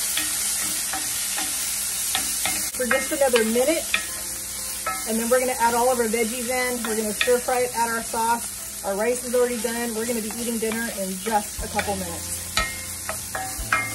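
A wooden spoon scrapes and stirs in a pan.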